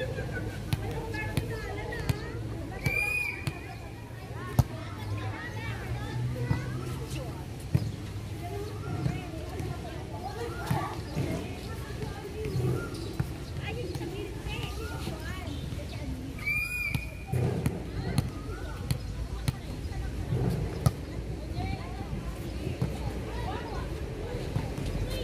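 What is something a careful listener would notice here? Women players call out to each other outdoors.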